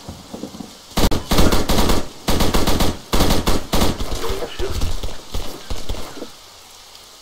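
A machine gun fires rapid bursts, close by.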